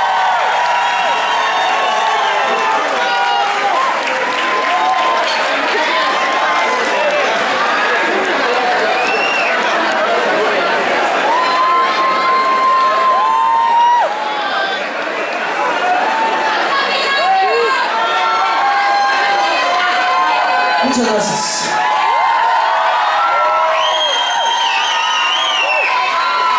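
Many people in a crowd whistle shrilly.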